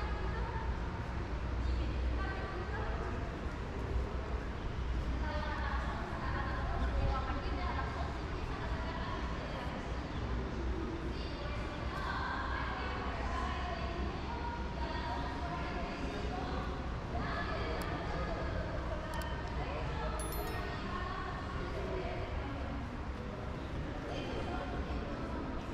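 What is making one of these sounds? A crowd of men and women murmur and chat nearby, echoing in a large open hall.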